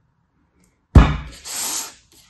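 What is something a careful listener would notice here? A lump of sand thumps down onto a hard surface.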